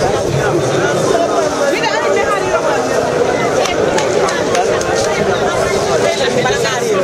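A crowd of women and men chatter loudly nearby, outdoors.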